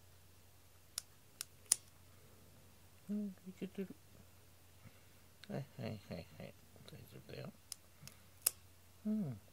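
Nail clippers snip with short sharp clicks.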